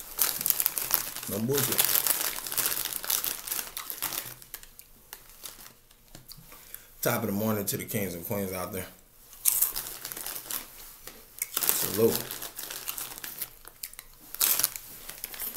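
A snack packet crinkles.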